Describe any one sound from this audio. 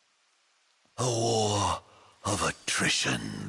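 A man speaks slowly and calmly.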